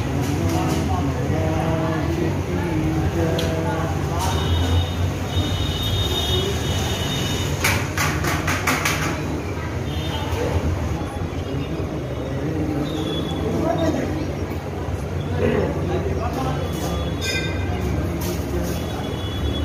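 Ceiling fans whir steadily overhead.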